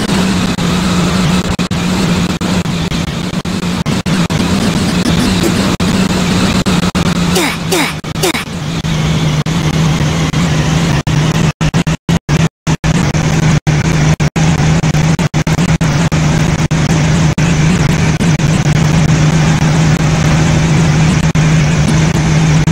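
A train engine drones steadily with a low hum.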